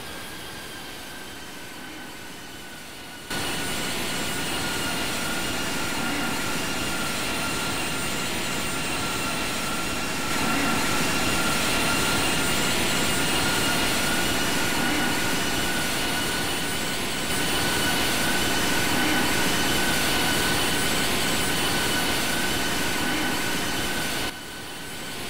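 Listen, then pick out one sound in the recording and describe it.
Jet engines roar steadily with a high, constant whine.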